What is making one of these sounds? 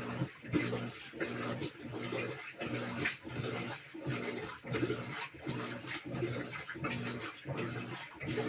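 A top-load washing machine agitates its wash load with a rhythmic churning and sloshing.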